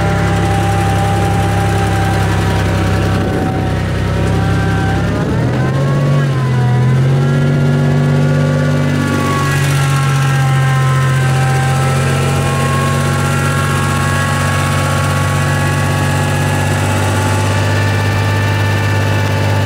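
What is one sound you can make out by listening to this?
A truck engine roars and revs hard, its pitch rising and falling.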